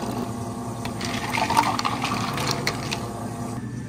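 Ice cubes clink into a plastic cup.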